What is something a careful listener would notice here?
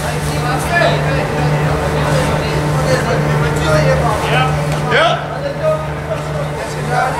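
Children and adults shout and laugh in a large echoing hall.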